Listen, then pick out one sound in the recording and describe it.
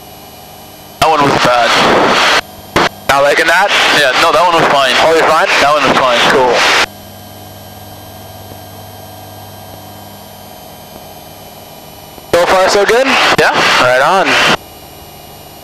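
A man speaks through a headset intercom, loud and close.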